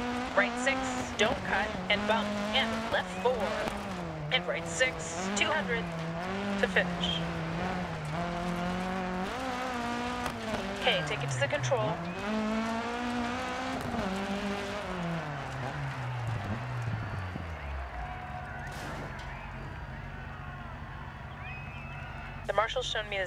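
A rally car engine revs hard, rising and falling as gears change, then slows and settles to an idle.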